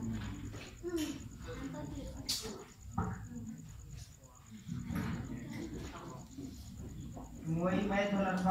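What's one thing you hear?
Many young boys murmur and chatter quietly nearby.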